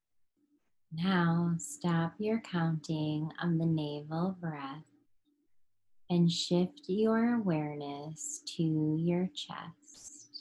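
A woman speaks calmly and close through a microphone.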